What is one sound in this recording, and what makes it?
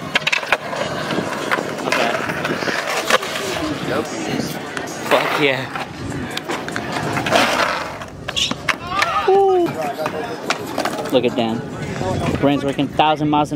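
Skateboard wheels roll and grind over concrete.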